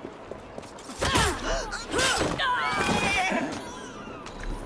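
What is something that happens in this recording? Blows thud and clatter in a brief scuffle.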